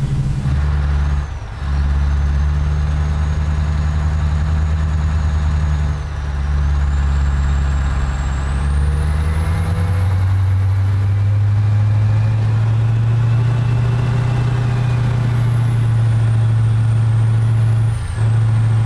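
A turbo whines high above the engine.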